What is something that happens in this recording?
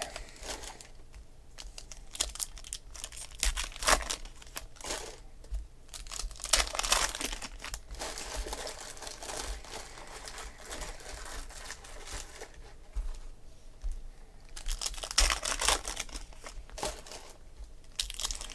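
Trading cards slide and tap against each other as they are sorted.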